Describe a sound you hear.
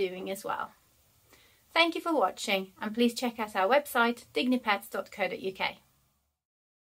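A woman talks calmly and clearly, close to the microphone.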